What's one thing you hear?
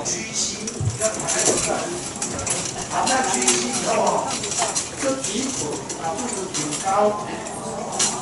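People in an audience murmur and chat.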